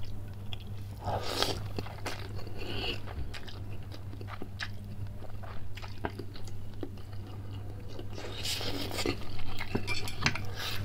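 A man slurps noodles loudly, close up.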